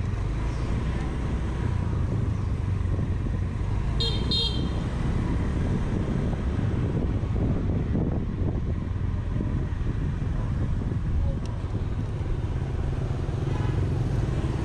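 A scooter engine hums steadily at low speed.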